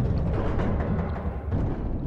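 A heavy metal wheel grinds as it turns.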